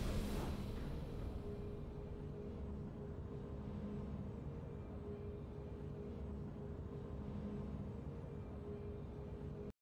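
Triumphant game music plays with a low, steady drone.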